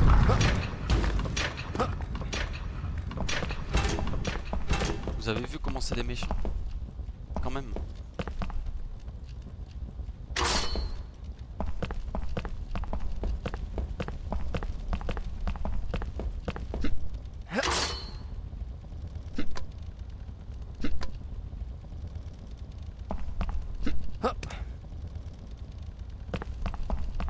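Footsteps tap on stone floors.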